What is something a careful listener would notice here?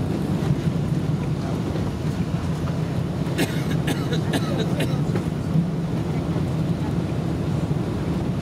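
A jet airliner's engines rumble steadily from inside the cabin as it rolls along the ground.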